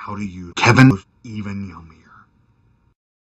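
A man speaks close by in a low, amused voice.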